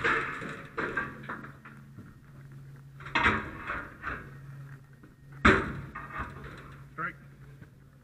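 Metal bangs sharply against a steel door.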